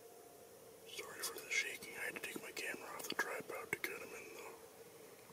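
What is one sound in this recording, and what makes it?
A deer's hooves rustle and crunch through dry leaves close by.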